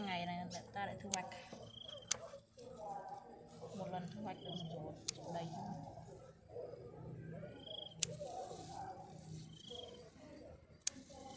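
Leaves rustle as a hand gathers them.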